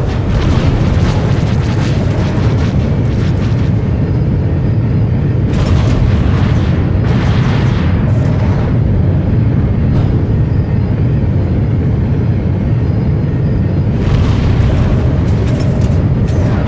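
Laser cannons fire in rapid crackling bursts.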